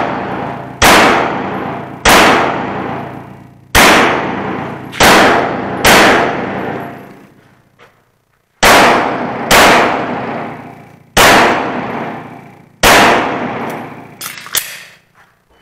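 A pistol fires loud single shots that boom and echo off the walls.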